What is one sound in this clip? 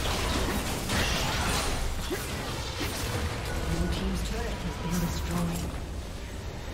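Weapons clash and hit with sharp impacts.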